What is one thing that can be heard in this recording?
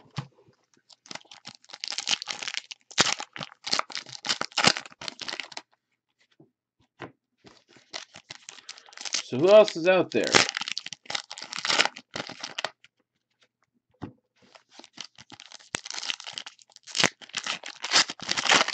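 A foil card pack wrapper crinkles and tears open in someone's hands.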